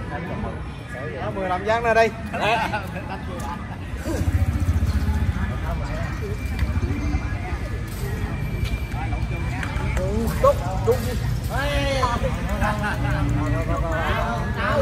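Men and women call out to each other outdoors.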